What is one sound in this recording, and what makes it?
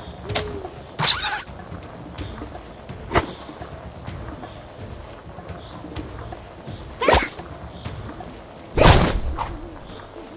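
Sharp cartoon impact effects burst as a thrown object strikes a character.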